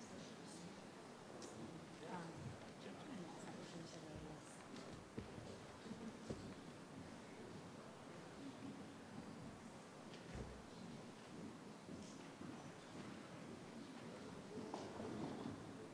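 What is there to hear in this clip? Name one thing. A middle-aged woman speaks calmly through a microphone in a large echoing hall.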